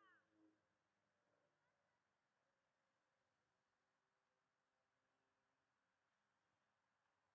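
Jet engines roar faintly far off overhead.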